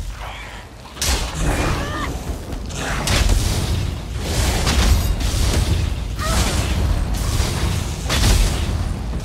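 Electric magic crackles and zaps in bursts.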